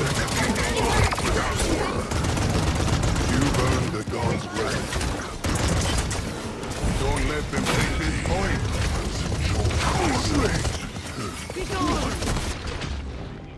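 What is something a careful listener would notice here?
Gunfire and energy blasts crackle rapidly in a fast-paced fight.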